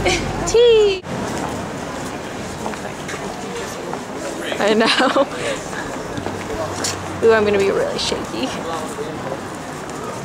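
A crowd of men and women chat and murmur nearby outdoors.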